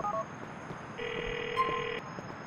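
A phone gives a ringing tone.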